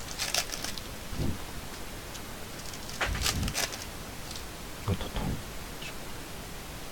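Cardboard card packs rustle and tap as a hand handles them.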